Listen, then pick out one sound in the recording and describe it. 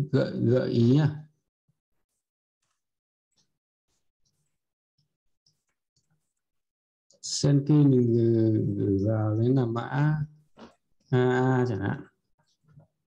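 A man talks calmly and closely into a microphone, pausing now and then.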